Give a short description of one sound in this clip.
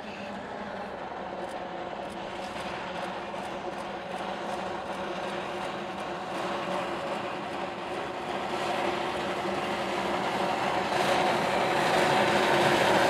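Train wheels rumble and clack on the rails.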